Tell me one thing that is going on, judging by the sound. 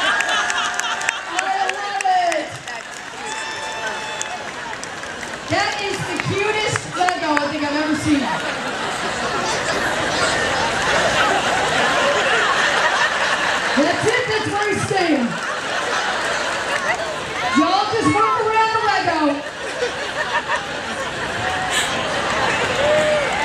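A large outdoor crowd chatters and laughs.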